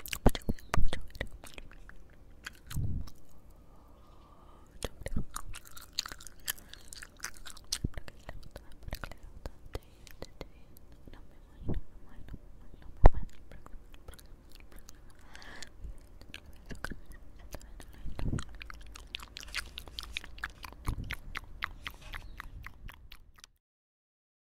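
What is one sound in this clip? A person makes wet mouth clicks and smacks very close to a microphone.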